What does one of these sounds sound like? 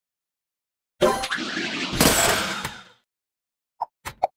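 Game blocks shatter and clear with crunching, chiming effects.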